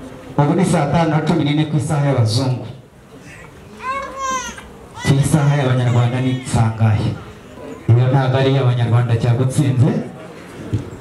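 A group of men sings together loudly in chorus.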